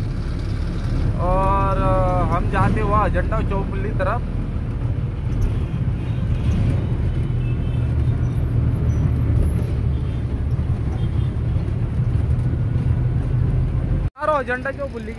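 Motorcycles and a tractor rumble along a busy road.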